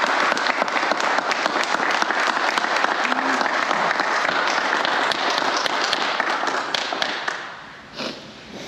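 A group of people applaud loudly and steadily, then the applause fades away.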